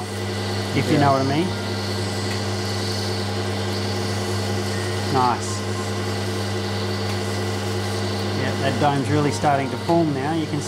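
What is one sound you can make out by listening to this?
A grinding wheel motor hums steadily.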